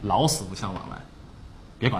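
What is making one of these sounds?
A man speaks briefly.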